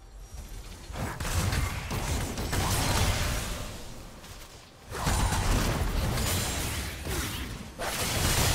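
Magic blasts and crackling spell effects burst in a fast fight.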